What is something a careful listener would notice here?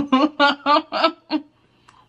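A woman crunches on food while chewing.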